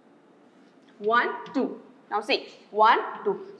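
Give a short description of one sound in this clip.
A woman speaks clearly and calmly nearby.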